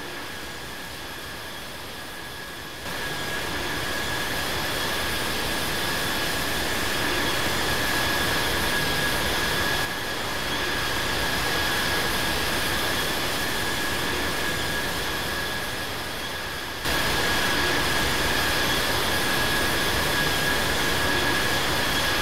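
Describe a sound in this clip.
Jet engines roar steadily with a high whine.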